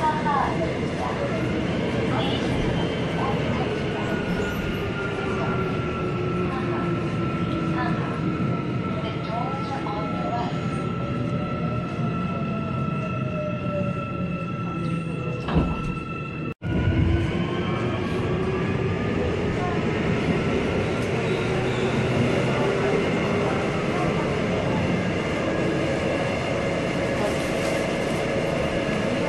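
Steel wheels of a subway train squeal on the rails.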